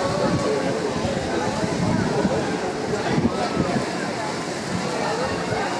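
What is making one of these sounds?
Water rushes and splashes as a boat slides down a flume.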